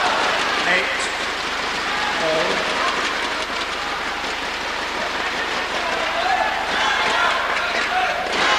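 A large indoor crowd murmurs and cheers, echoing through a big hall.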